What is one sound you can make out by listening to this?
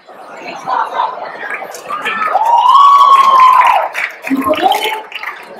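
A crowd of men and women chatter in a large echoing hall.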